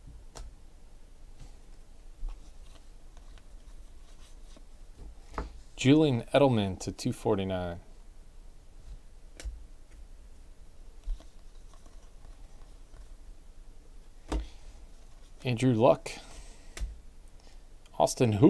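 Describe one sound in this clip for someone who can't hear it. Trading cards rustle and flick as they are sorted by hand.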